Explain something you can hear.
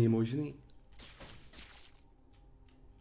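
A game laser effect whooshes with a hissing rush.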